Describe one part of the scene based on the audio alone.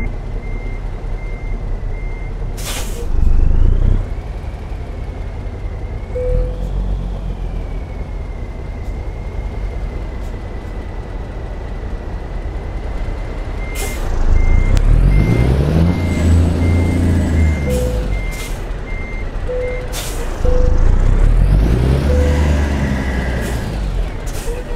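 A diesel semi-truck engine rumbles and revs as it maneuvers.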